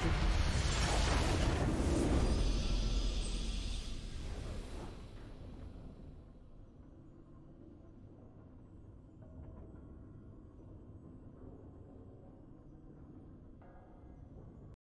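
A victory fanfare swells and then fades into a soft hum.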